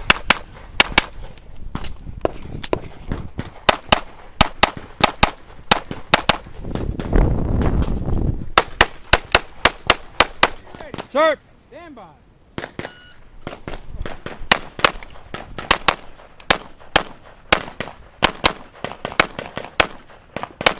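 A pistol fires rapid shots outdoors, each crack sharp and close.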